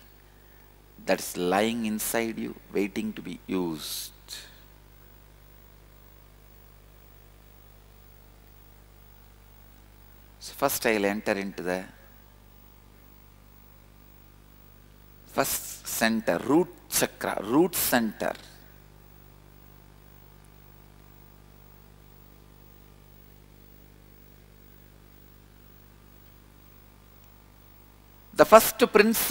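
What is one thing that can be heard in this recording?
A man speaks calmly into a microphone, in short phrases with long pauses.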